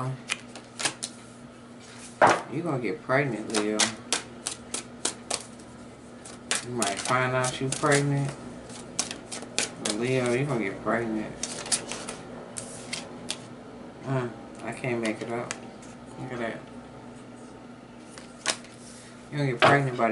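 A card taps down onto a wooden table.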